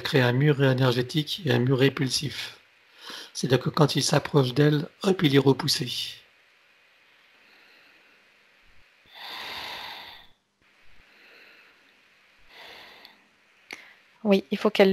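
A man speaks calmly through a headset microphone over an online call.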